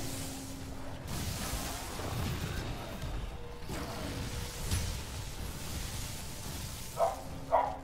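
Flames burst with a rushing roar.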